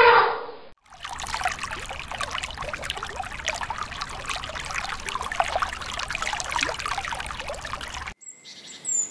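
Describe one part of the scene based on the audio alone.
Water bubbles and hisses underwater.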